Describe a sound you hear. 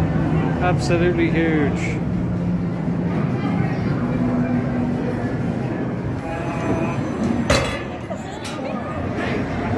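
Arcade machines play electronic jingles and beeps.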